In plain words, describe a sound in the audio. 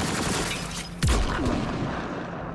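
A gun fires with a deep boom.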